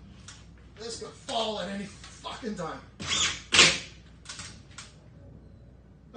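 A power drill whirs in short bursts.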